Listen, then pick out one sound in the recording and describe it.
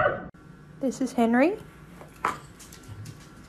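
A dog whines with a high, bending whimper.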